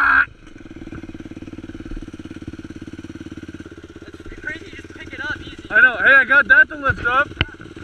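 Another dirt bike engine idles and revs nearby.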